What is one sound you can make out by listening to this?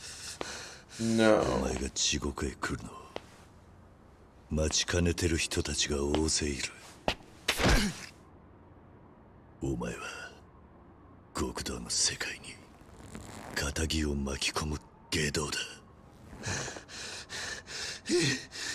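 A man speaks coldly and menacingly.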